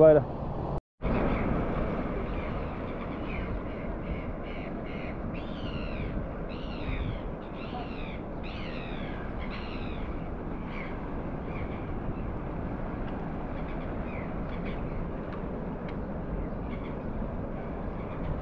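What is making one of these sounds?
Small waves lap gently on a stony shore.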